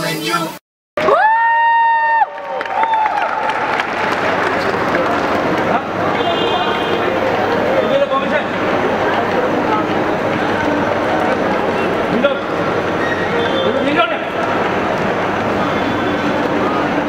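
Music plays loudly over speakers in a large echoing hall.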